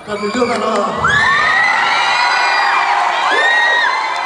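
A young woman sings into a microphone over loudspeakers.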